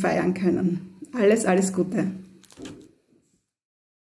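A middle-aged woman speaks warmly and close to the microphone.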